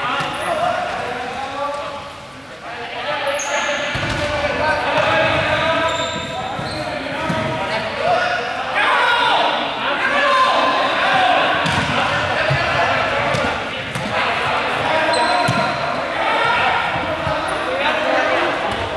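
Many children shout and chatter, echoing in a large hall.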